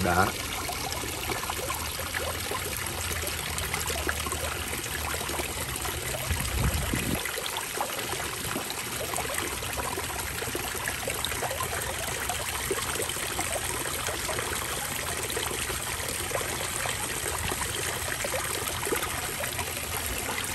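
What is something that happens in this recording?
Water trickles and splashes over rocks.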